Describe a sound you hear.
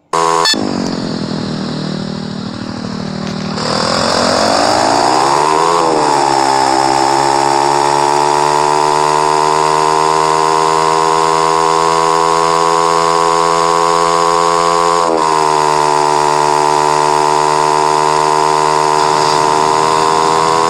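A motorcycle engine revs up and whines steadily at high speed.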